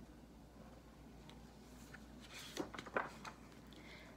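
Book pages rustle as they turn.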